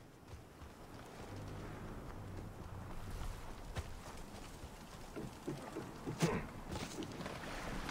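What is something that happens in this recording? Footsteps patter on stone and wooden planks.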